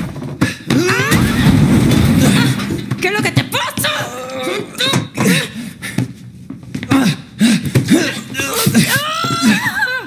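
A man and a woman struggle, grunting and straining.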